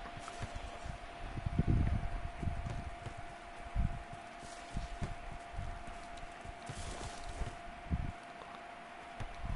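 A ball is kicked with dull thumps.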